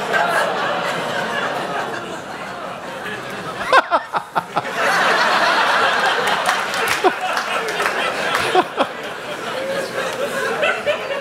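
A large audience laughs loudly in a hall.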